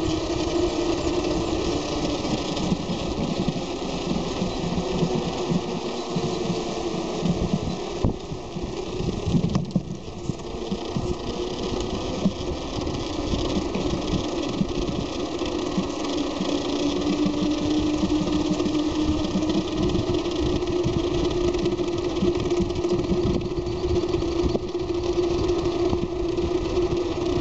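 Bicycle tyres hum on the road.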